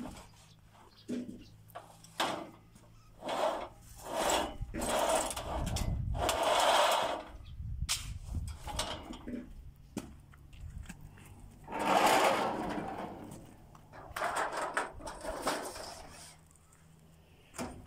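Sheet metal rattles and clanks against a metal frame.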